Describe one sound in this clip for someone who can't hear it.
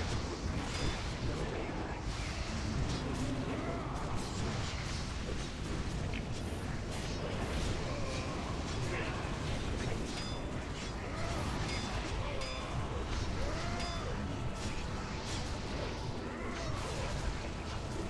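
Spell effects crackle and burst in a game battle.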